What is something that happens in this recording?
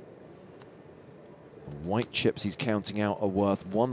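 Poker chips click together.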